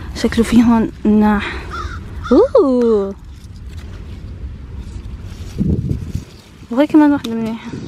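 Leaves rustle as fruit is picked from low plants.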